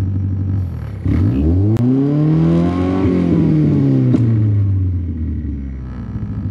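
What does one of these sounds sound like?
A car engine revs up high and then falls back to idle.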